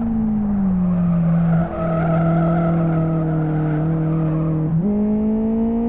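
Tyres squeal through a corner.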